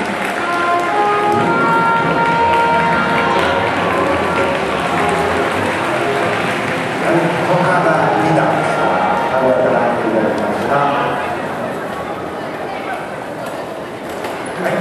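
Music with a melody plays loudly through loudspeakers in a large hall.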